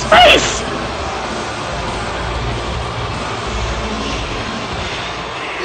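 A large crowd cheers in a big echoing arena.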